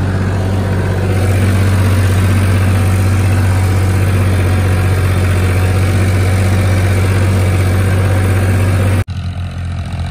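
A rotavator churns through soil.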